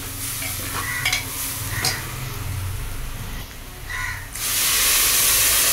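A metal spoon scrapes and clinks against a metal pot.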